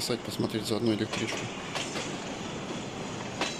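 An electric train rolls past on the rails.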